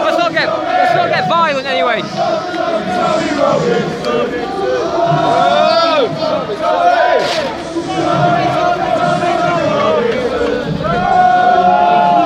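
Men nearby talk and shout over the crowd.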